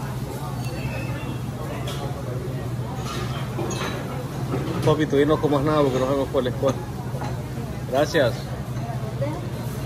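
A crowd of diners murmurs in the background.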